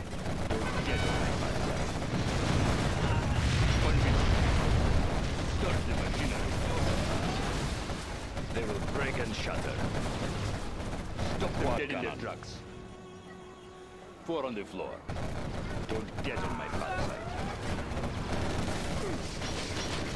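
Explosions boom and rumble in a game battle.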